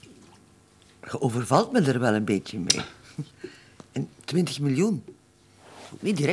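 A middle-aged woman talks with animation.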